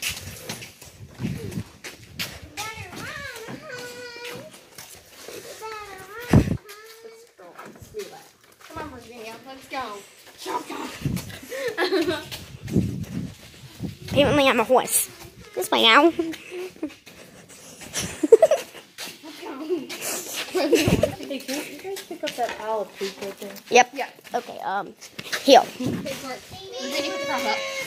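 A young girl talks and laughs nearby.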